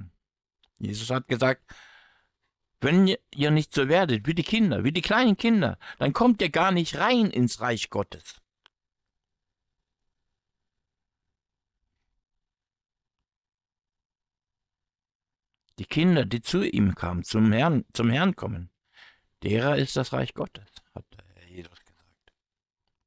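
A man talks calmly and warmly into a close microphone.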